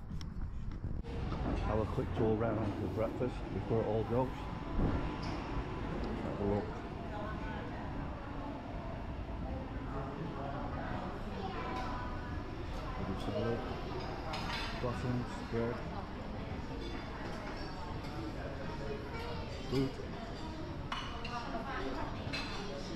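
Men and women chatter in the background of a busy room.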